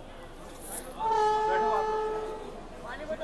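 A locomotive horn sounds in the distance.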